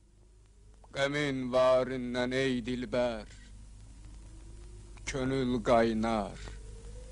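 A young man speaks calmly outdoors.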